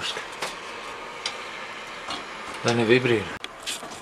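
A metal housing knocks and scrapes against a bracket.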